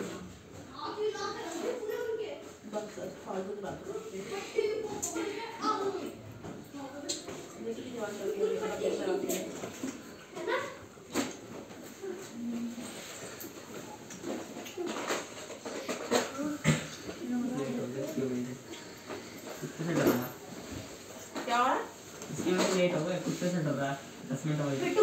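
A woman speaks calmly to children nearby.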